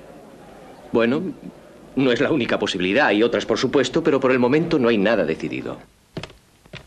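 A man answers calmly into a microphone.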